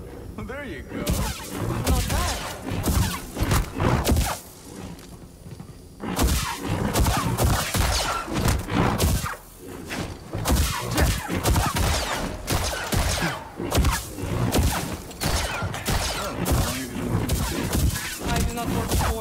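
Lightsaber strikes clash and crackle.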